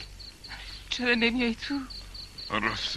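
A woman asks a question in a worried voice.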